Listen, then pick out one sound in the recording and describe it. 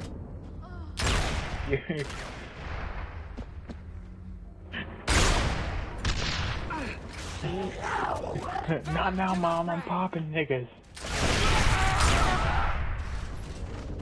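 Gunfire rattles in loud bursts.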